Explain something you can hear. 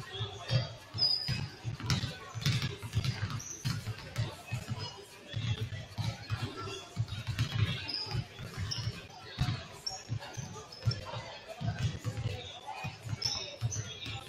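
Basketballs bounce on a hardwood floor, echoing in a large hall.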